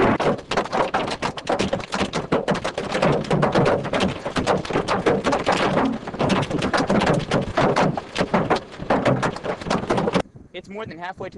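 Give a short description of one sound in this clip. Hail pelts the ground hard and fast.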